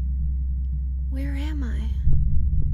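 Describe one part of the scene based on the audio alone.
A young woman speaks softly and fearfully, close by.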